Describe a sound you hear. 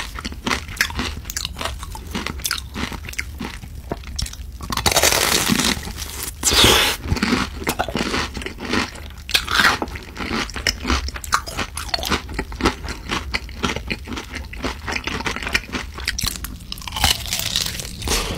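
Fried food crackles as a gloved hand picks it up.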